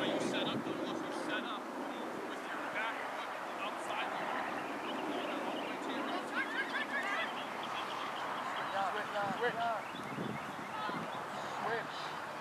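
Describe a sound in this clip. Boys shout to one another across an open outdoor field.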